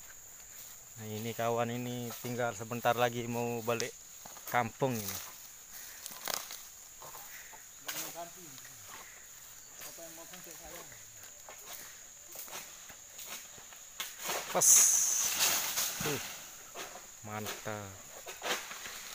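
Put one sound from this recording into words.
A man talks nearby with animation.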